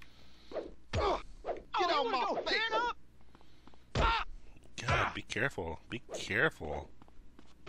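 Baseball bats thud against bodies in heavy blows.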